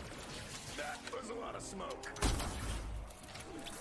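A ray gun fires with crackling electric zaps.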